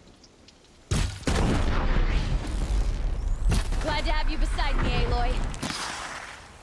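A loud explosion bursts and rumbles.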